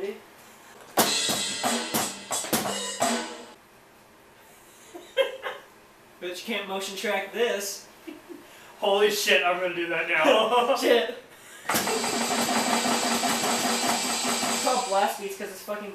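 Drums and cymbals crash and clatter in bursts.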